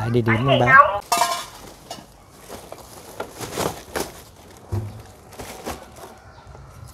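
Plastic bags rustle and crinkle as they are lifted and hung up.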